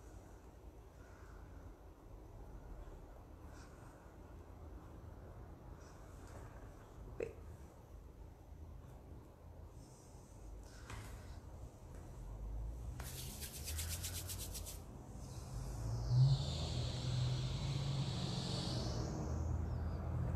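Hands rub and smooth soft fondant with a faint brushing sound.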